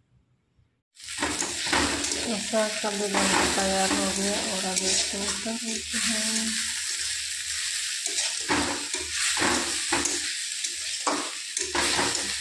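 A metal spoon scrapes and knocks against a pan.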